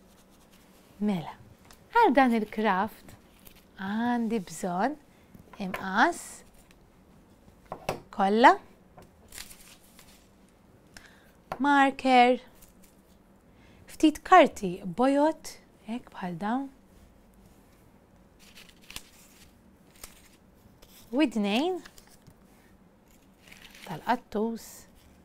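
A woman speaks calmly and expressively close by.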